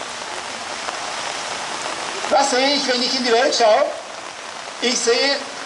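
Light rain patters on umbrellas.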